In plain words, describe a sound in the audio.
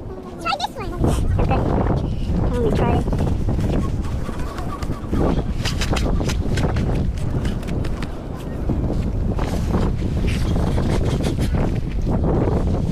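Wind blows hard across the microphone outdoors.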